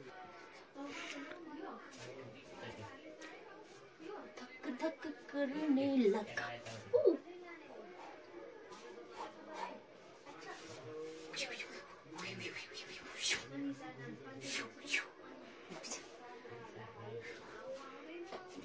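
Bare feet shuffle and thump on a floor.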